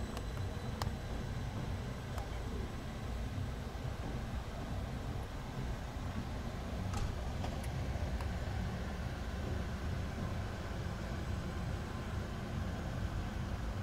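A passenger train rolls past with a low rumble.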